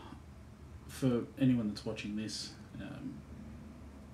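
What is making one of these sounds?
A middle-aged man talks with animation close to the microphone.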